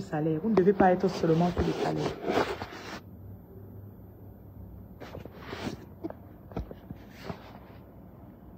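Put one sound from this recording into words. Fabric rustles against a phone microphone.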